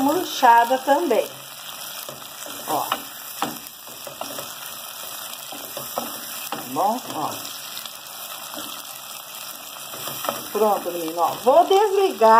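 A wooden spoon scrapes and stirs food in a metal pot.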